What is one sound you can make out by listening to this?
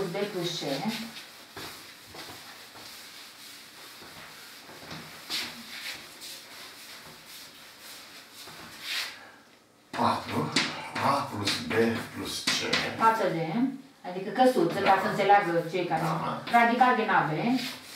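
An elderly man speaks calmly, lecturing.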